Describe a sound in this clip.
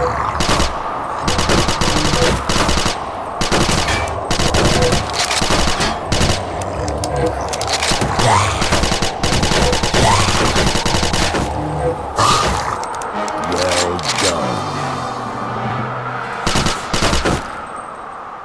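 Video game gunfire bursts loudly in rapid rattling volleys.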